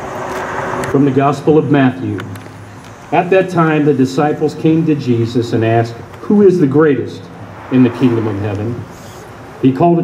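A man speaks calmly through a microphone outdoors.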